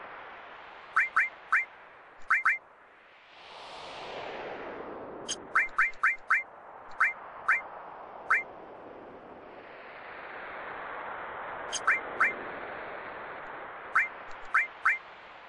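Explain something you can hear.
Short, high menu blips sound as a cursor moves through a game menu.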